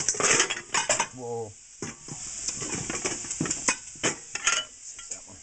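Dishes clink and clatter in a rack.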